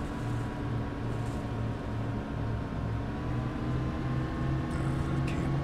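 A bus engine hums and throbs steadily while driving.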